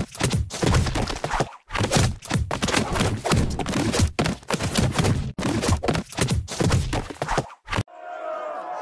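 Rapid wet splats burst over and over.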